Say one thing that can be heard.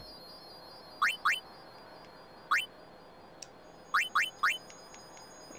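Short electronic blips tick as menu choices are made.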